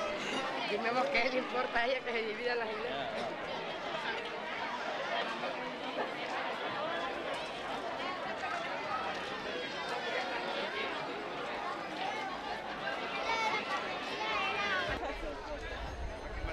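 A crowd of men and women chatters all around outdoors.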